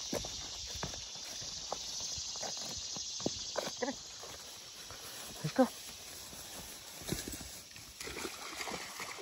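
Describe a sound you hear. Footsteps crunch through leaves and grass.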